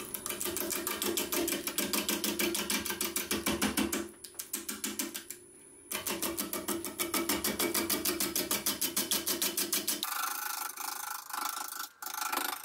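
A wood lathe whirs steadily.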